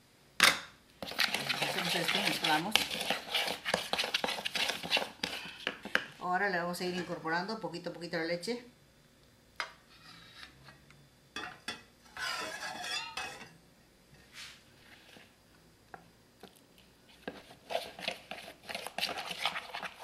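A metal spoon scrapes and stirs in a plastic bowl.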